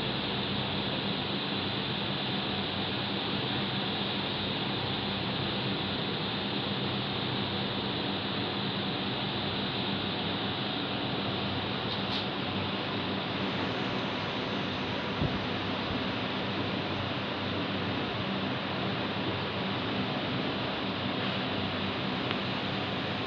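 Distant city traffic hums steadily.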